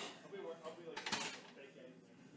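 A loaded barbell clanks onto a metal rack.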